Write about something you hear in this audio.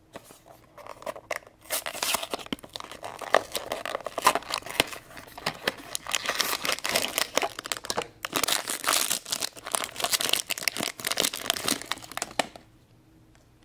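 Cardboard and foil wrapping tear and crinkle loudly.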